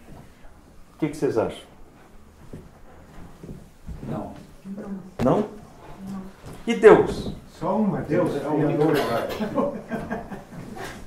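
An older man speaks calmly to an audience, pausing often.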